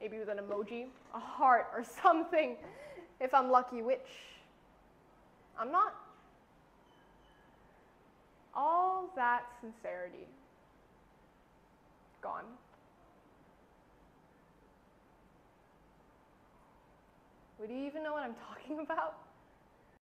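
A young woman speaks expressively nearby, in short bursts with pauses.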